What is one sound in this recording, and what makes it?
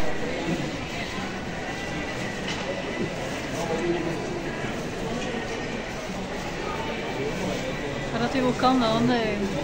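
A busy indoor hall hums with distant crowd chatter and footsteps.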